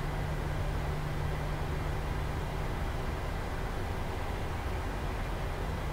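A jet engine hums and rumbles steadily at idle.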